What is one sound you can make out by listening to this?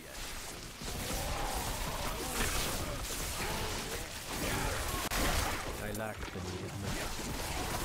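Game combat effects whoosh and thud throughout.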